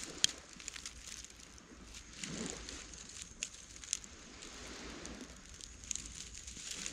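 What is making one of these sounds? Sand scrapes and shifts softly.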